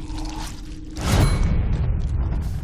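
A man lands a heavy punch.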